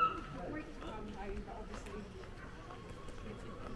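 A man and a woman chat quietly nearby as they walk past.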